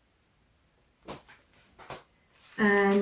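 A plastic sleeve crinkles as it is handled.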